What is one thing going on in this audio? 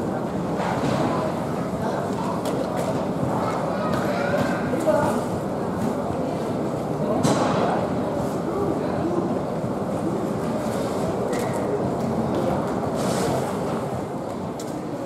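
A baggage conveyor belt rumbles steadily.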